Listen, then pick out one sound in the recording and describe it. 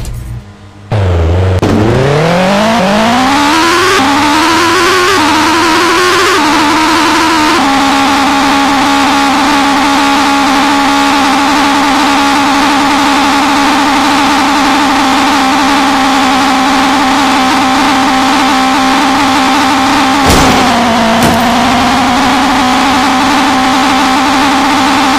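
A truck engine revs up and then hums at a steady pitch.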